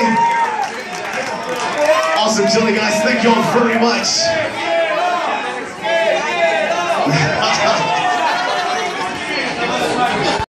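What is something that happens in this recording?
A man shouts with excitement into a microphone over loudspeakers.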